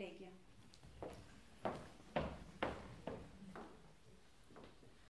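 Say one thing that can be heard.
Heels knock on a wooden stage.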